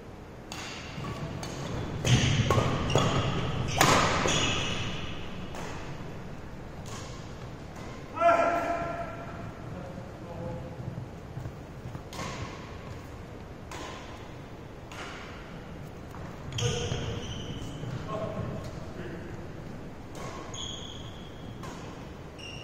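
Badminton rackets strike a shuttlecock with sharp pops in an echoing hall.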